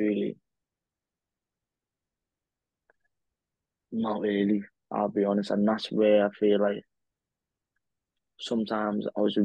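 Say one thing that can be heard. A young man speaks calmly over an online call, in short phrases with pauses.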